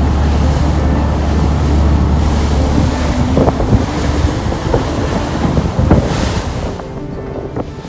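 Water churns and splashes in the wake of a boat.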